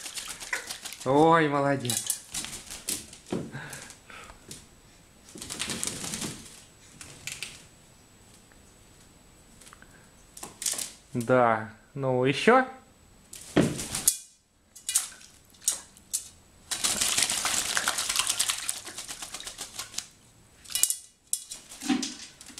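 A crow splashes water in a shallow metal basin.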